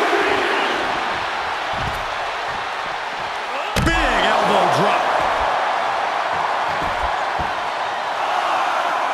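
A large arena crowd cheers and roars steadily.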